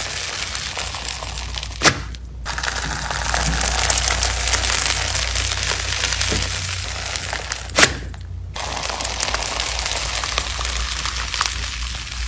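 A metal scoop crunches and scrapes through soft, crumbly sand.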